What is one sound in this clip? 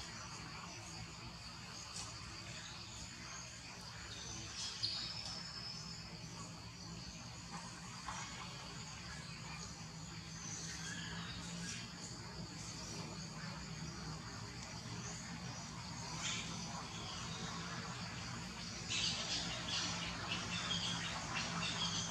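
Thin dry branches rustle and creak as a baby monkey climbs and swings.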